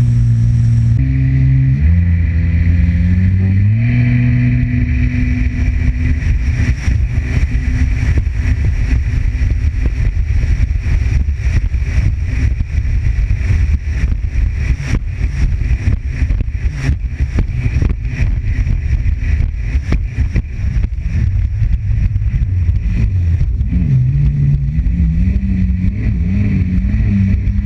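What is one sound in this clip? Water splashes and slaps against the hull of a fast jet ski.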